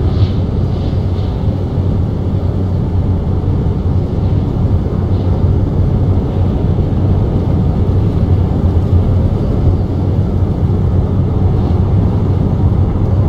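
A truck engine hums steadily at a low pitch.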